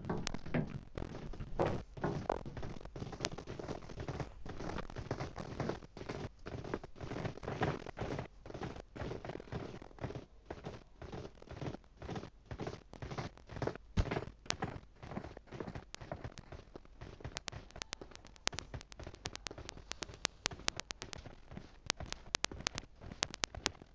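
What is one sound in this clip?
Footsteps pound quickly on hard ground.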